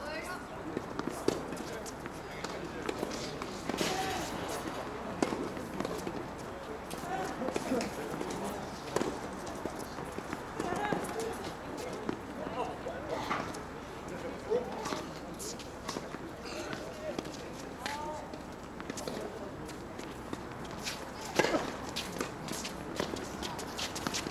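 Footsteps squeak and scuff on a hard court.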